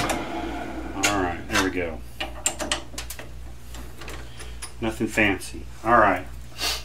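Metal tools clink.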